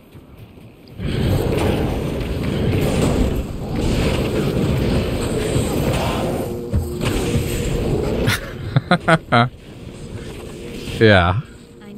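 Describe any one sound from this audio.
Magic spells crackle and blast during a fight.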